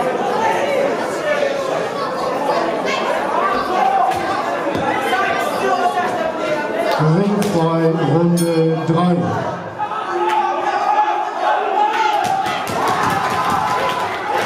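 A crowd of men and women chatters and calls out loudly in an echoing hall.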